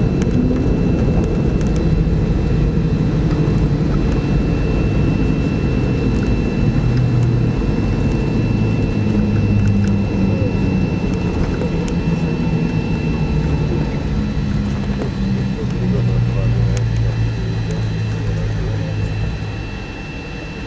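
A car engine hums steadily, then quietens.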